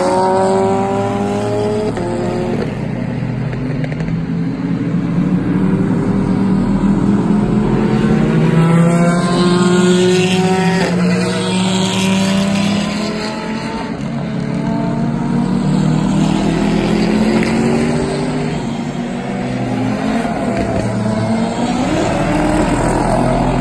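Racing car engines roar past on a wet track, rising and falling in pitch as they shift gears.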